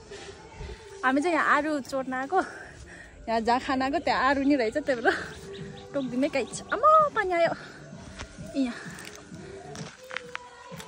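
A young woman talks cheerfully and laughs close by, outdoors.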